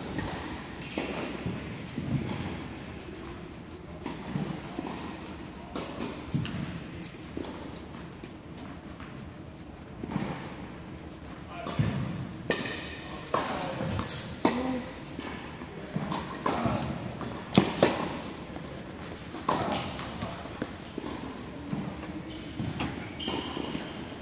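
Tennis balls pop off rackets in a large echoing hall.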